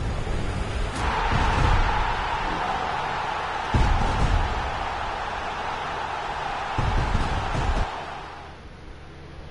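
A stadium crowd roars as fireworks crackle from a game.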